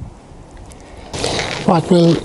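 Gravel grit pours and rattles into a pot.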